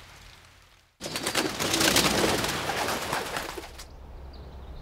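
Pigeons flap their wings in flight.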